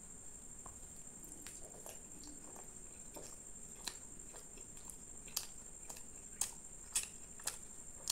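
A man chews food loudly.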